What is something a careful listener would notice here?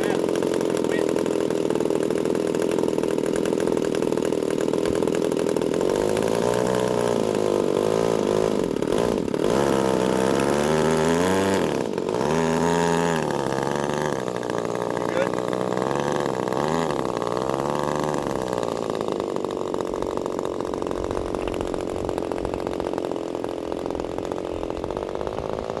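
A model airplane engine buzzes loudly and steadily, rising and falling in pitch as the throttle changes.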